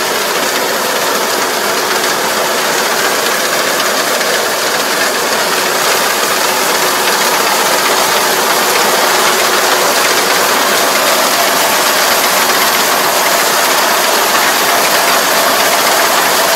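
A combine harvester engine roars steadily nearby, growing louder as it approaches.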